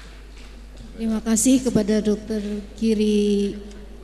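A group of women chant together.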